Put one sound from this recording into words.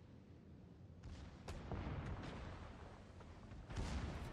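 Heavy ship guns fire with deep, rumbling booms.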